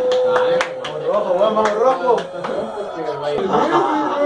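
Young men exclaim nearby.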